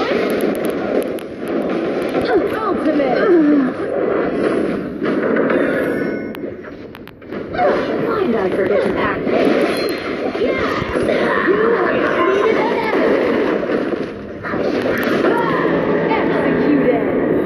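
Fantasy game skill effects whoosh and crackle in battle.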